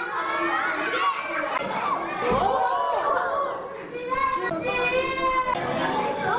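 Young children chatter and exclaim excitedly close by.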